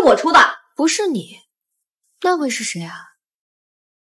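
A young woman speaks close by in a worried, questioning voice.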